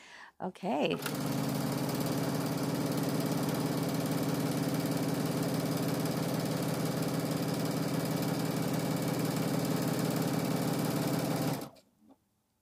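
A sewing machine hums steadily as it stitches fast.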